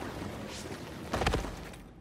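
Footsteps sound on hard ground.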